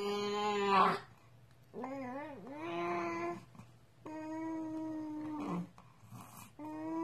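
A baby coos and babbles in long, sing-song sounds close by.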